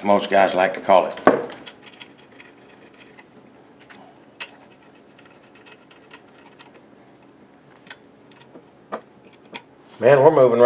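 A hex key clicks faintly against metal screws.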